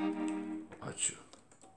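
An accordion plays a short chord.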